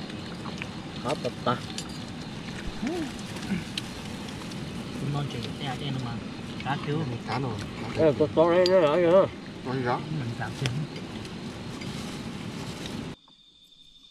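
Several people talk and laugh close by.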